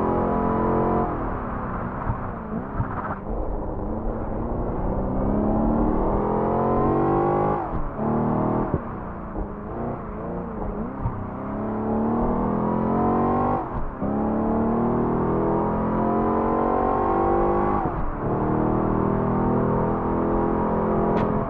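A supercharged V8 sports car engine revs hard and shifts up through the gears.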